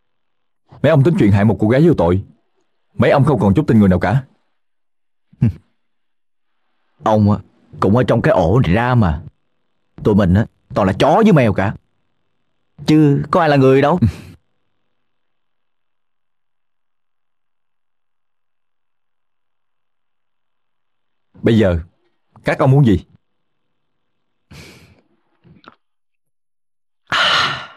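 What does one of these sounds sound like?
A second young man answers with animation, close by.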